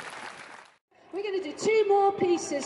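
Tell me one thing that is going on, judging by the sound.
A woman speaks into a microphone over a loudspeaker.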